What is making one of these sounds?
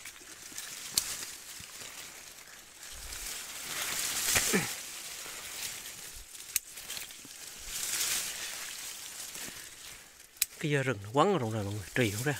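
Pruning shears snip through thin branches.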